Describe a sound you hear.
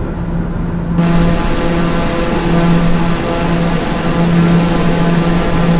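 A single-engine turboprop roars in cruise, heard from outside the aircraft.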